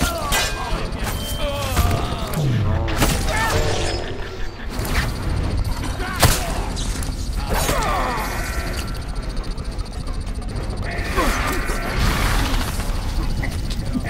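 Swords clash and clang sharply.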